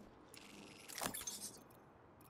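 A menu clicks.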